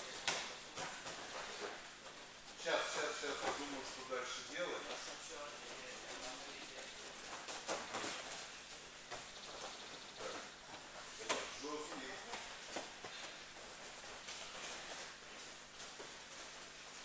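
Bare feet shuffle and stamp on padded mats in an echoing hall.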